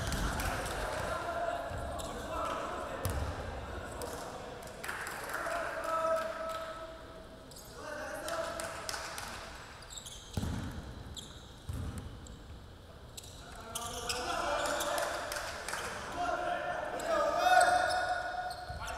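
Young men call out across an echoing gym.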